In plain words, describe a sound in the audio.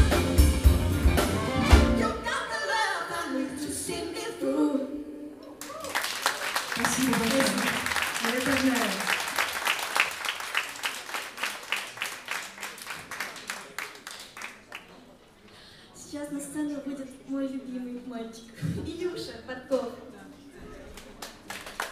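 A live band plays on stage with horns, guitars and drums.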